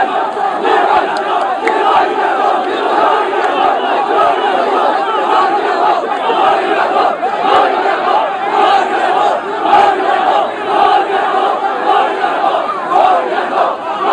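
A dense crowd of men shouts and chants loudly close by.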